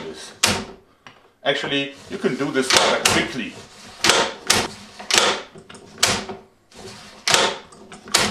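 A wooden mechanism clacks sharply as a hand crank is turned.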